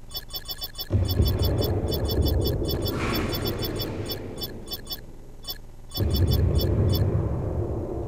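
Short electronic menu blips tick in quick runs.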